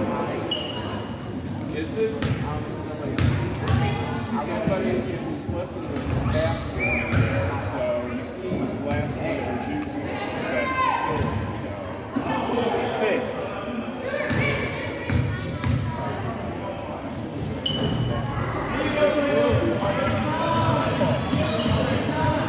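Young players and adults talk and call out across an echoing gym.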